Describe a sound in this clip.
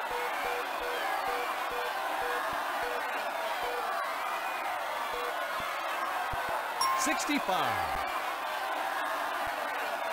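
A crowd cheers and applauds steadily.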